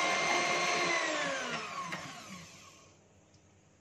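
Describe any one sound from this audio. An electric hand mixer winds down and stops.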